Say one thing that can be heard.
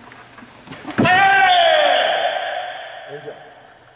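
A man lets out a sharp, loud shout that rings through an echoing hall.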